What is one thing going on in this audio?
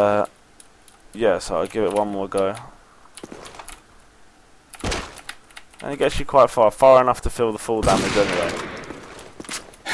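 A pistol clicks as it is reloaded.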